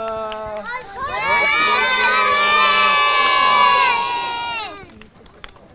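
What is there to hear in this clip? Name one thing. A crowd of children shouts and cheers together.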